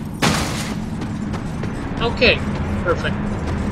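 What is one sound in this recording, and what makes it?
Heavy footsteps thud on stone.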